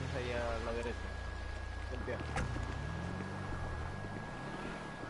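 A car engine idles and revs.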